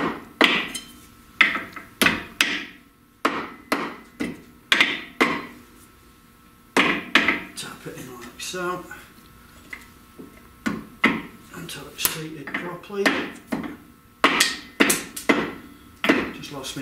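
Metal parts clink and scrape.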